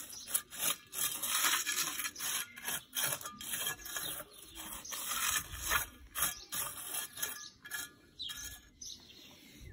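A trowel scrapes and digs through soil.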